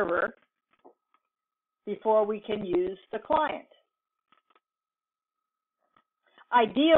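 A woman speaks calmly through a computer microphone, with pauses.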